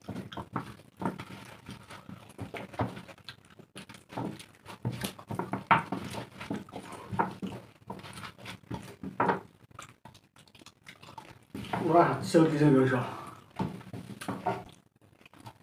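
A woman chews and slurps food loudly, close by.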